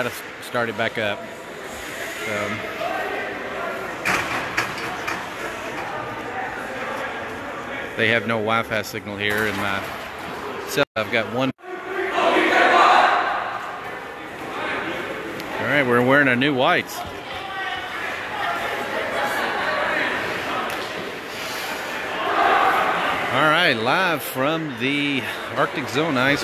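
Young players shout and cheer together in a large echoing rink.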